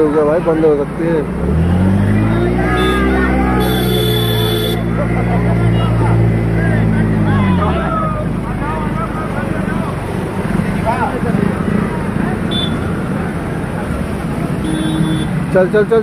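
Water splashes and swishes as vehicles wade through a flooded road.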